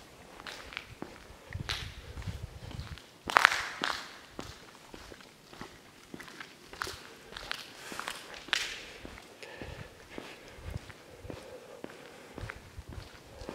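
Footsteps crunch on scattered debris in a large echoing hall.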